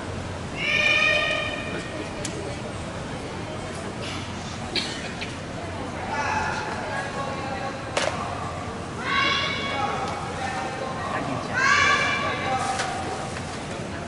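Young women shout sharp cries in an echoing hall.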